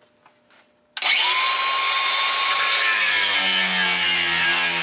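An angle grinder whirs to life with a sudden loud whine.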